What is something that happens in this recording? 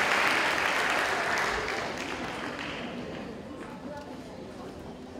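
An audience applauds in a large hall, and the clapping slowly fades.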